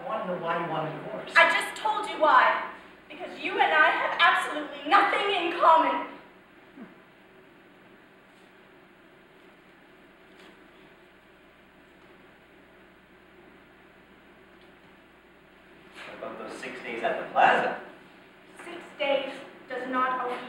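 A young woman speaks with emotion, heard from a distance in a hall.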